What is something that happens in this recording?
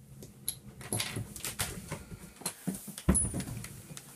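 A wooden floor hatch knocks and scrapes as it is lifted open.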